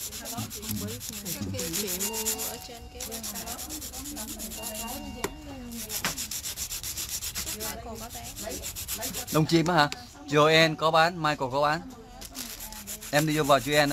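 A nail file scrapes quickly back and forth against a fingernail.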